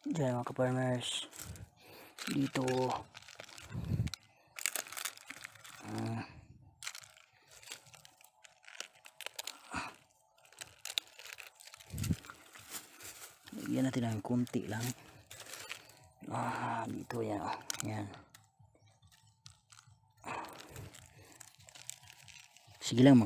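Dry palm fronds rustle and crackle as a hand pushes through them.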